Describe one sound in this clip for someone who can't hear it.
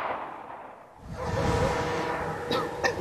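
A young man laughs and shouts excitedly nearby.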